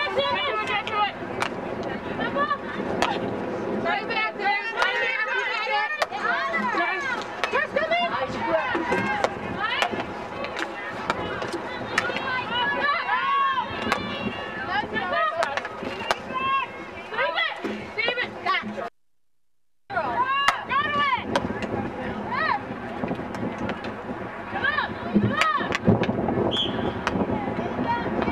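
Hockey sticks clack sharply against a ball and against each other.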